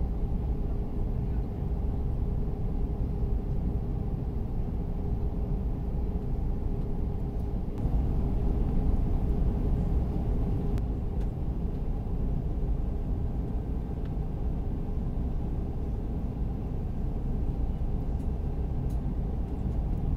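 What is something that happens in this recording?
A jet engine roars steadily inside an airliner cabin, with a low, constant drone.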